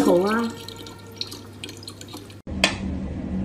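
Water runs from a tap into a plastic bottle.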